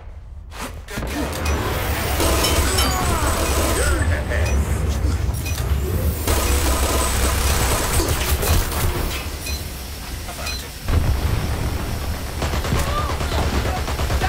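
A minigun fires in a rapid, roaring burst.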